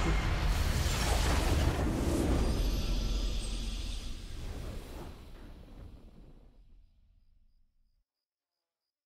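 A triumphant game fanfare swells loudly, then fades away to silence.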